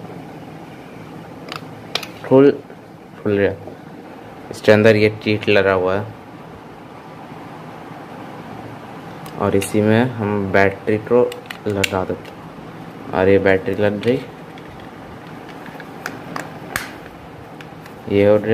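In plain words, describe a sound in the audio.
A plastic case clicks and snaps as hands open and close it.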